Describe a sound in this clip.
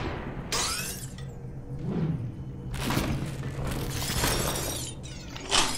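Glass shatters with a bright crash.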